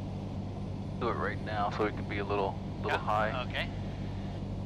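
A man speaks over a headset radio intercom.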